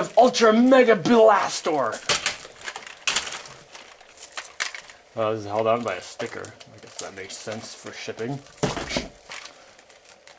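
Plastic parts of a toy click and clack as they are handled.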